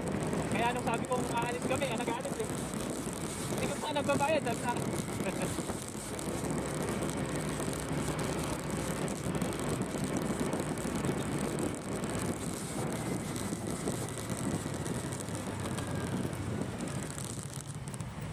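A motorbike engine hums steadily while riding.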